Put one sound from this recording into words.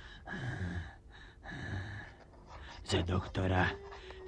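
A quill pen scratches on paper.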